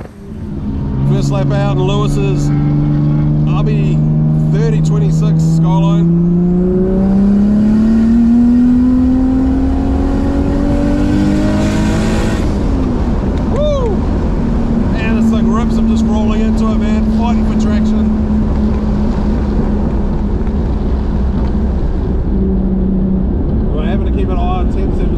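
A car engine drones loudly inside the cabin, its pitch rising and falling as the car speeds up.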